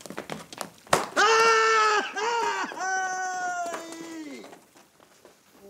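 A man shouts loudly outdoors.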